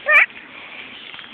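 A small child squeals briefly, close by.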